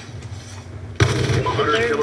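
A gunshot sounds from a video game over a loudspeaker.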